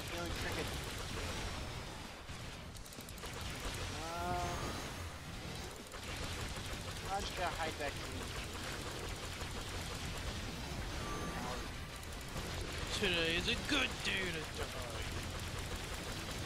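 Magic bolts fire and crackle in quick bursts.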